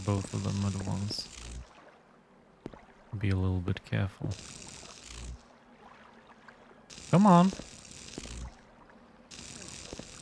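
A magic spell crackles and shimmers.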